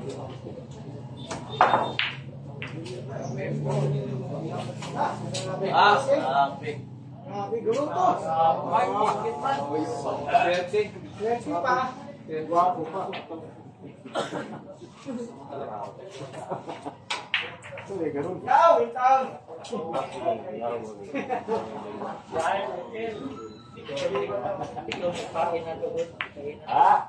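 A crowd of men and women chatter and call out nearby.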